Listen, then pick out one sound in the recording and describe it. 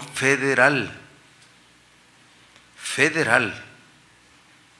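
A middle-aged man speaks calmly into a microphone in short bursts.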